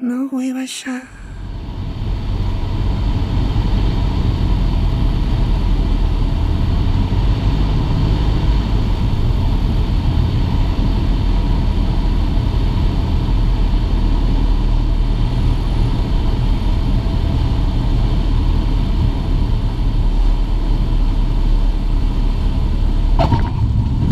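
A small plane's propeller engine drones loudly and steadily.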